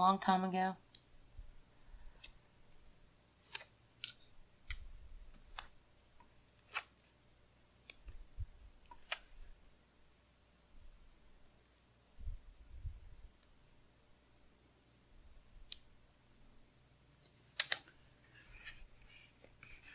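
Paper rustles and crinkles as hands handle a sticker sheet.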